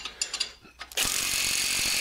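A cordless impact wrench whirs steadily.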